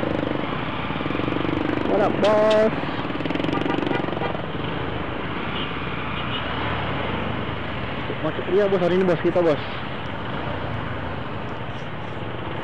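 A motorcycle engine idles close by.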